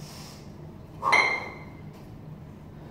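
Metal kettlebells clank together with a short ringing.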